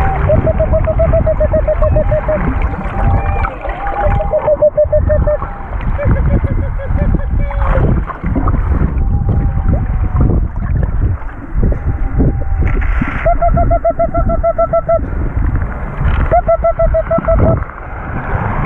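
Dolphins make rapid buzzing calls and whistles underwater.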